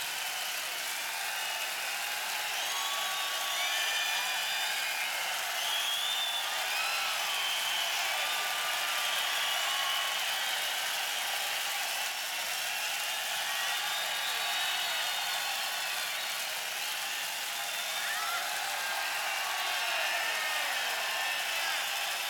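A large crowd cheers and whistles loudly in a big arena.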